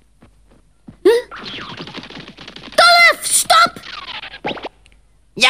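A high, squeaky cartoon voice chatters excitedly close by.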